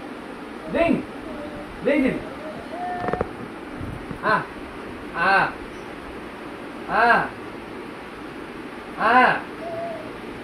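A man calls out loudly and playfully, close by.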